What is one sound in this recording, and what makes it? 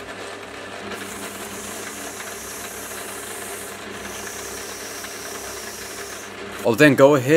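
Abrasive paper hisses against a spinning metal part.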